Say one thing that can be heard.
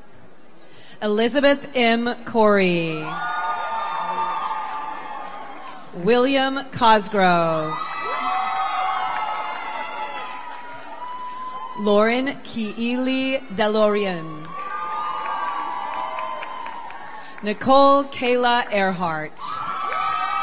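A woman reads out names through a loudspeaker.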